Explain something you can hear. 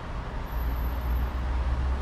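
A car approaches along a road.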